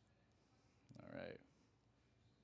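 A man makes a short sound with his voice close to a microphone.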